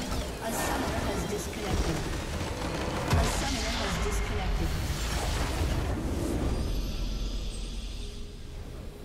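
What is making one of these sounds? Game battle effects clash and crackle loudly.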